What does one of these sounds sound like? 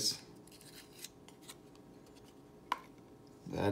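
A folding knife clicks softly as it is handled.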